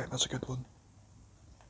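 A young man talks briefly into a microphone.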